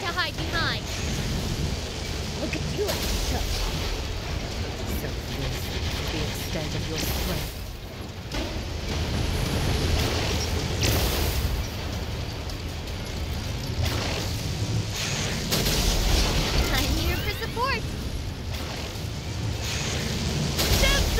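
Machine guns rattle in rapid bursts.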